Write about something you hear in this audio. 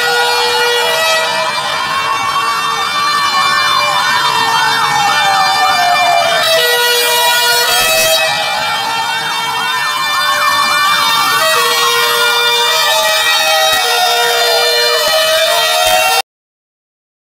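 A siren wails, rising and falling slowly, with quick yelping bursts over it.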